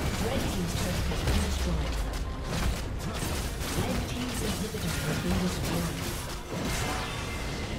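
Game spell effects crackle and boom during a fight.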